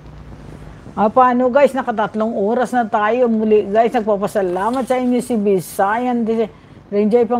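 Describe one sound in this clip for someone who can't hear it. A middle-aged woman speaks with animation close to a microphone.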